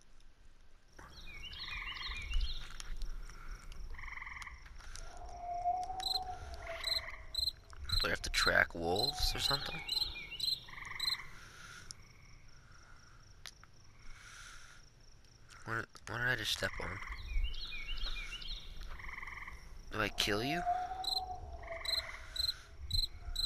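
An animal's paws rustle through tall grass as it runs.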